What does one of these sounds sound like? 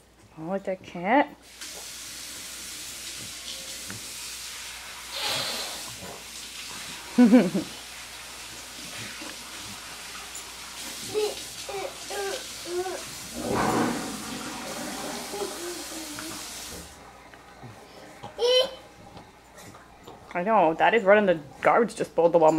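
A toddler babbles nearby.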